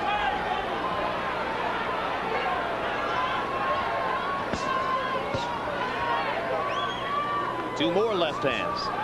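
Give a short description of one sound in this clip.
A large crowd murmurs and shouts throughout.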